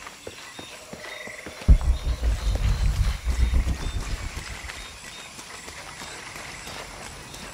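Footsteps crunch on a leafy forest floor.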